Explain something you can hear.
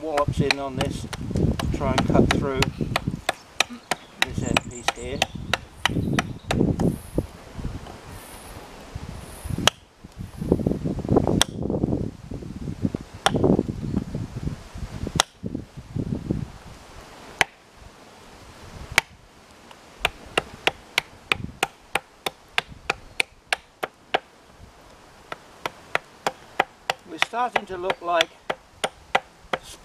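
A hatchet chops and taps at a piece of wood with quick, sharp knocks.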